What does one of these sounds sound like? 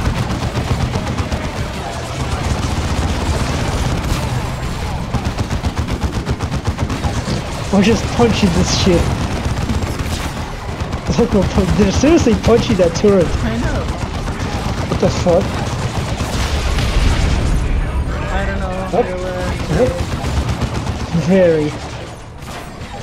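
Rapid gunfire rattles throughout a battle.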